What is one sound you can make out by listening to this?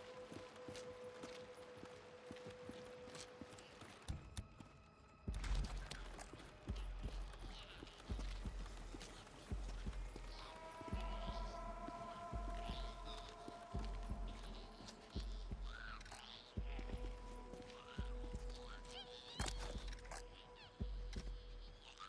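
Footsteps thud quickly on pavement as a man runs.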